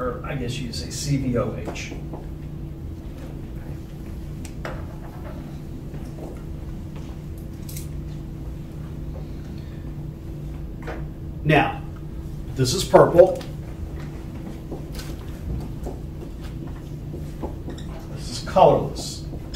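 A man speaks calmly in short bursts with long pauses.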